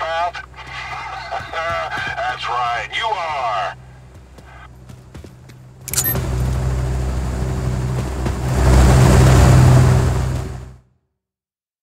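A helicopter's rotor thuds and roars overhead, growing louder up close before cutting off.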